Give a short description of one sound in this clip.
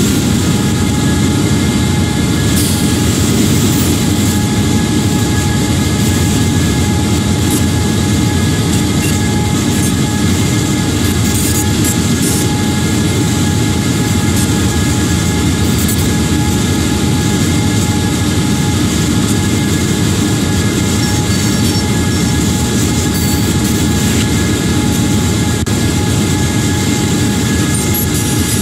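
A diesel locomotive engine rumbles steadily as a train rolls along.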